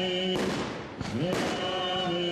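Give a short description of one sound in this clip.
A firework whistles as it rises.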